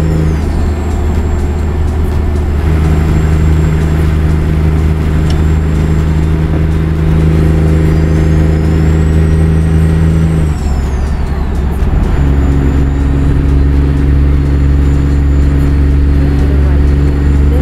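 A truck engine drones steadily, shifting pitch as gears change.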